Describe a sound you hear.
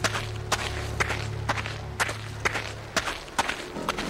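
Tall grass rustles as someone pushes through it.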